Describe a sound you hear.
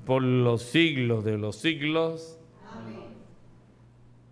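A man chants through a microphone in an echoing room.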